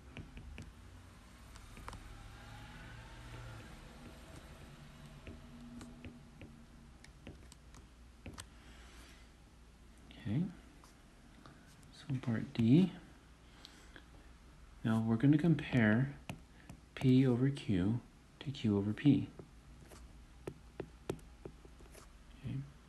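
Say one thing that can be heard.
A stylus taps and scratches on a glass surface while writing.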